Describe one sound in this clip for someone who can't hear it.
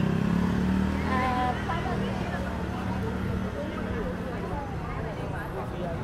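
A motor scooter engine hums as it rides slowly closer.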